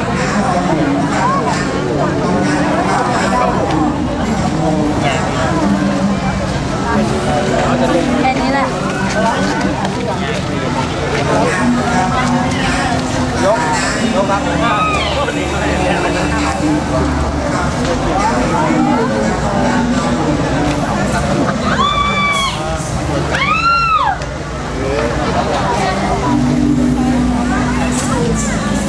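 A crowd of young people chatter and call out excitedly close by.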